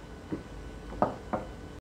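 A glass clinks softly as it is set down.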